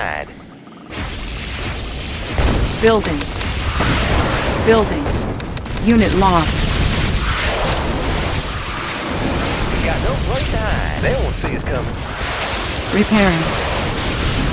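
Explosions rumble and boom in a battle.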